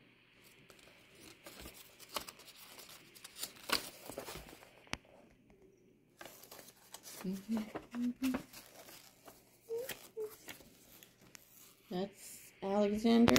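Stiff paper flaps rustle and crackle as they are folded open and shut.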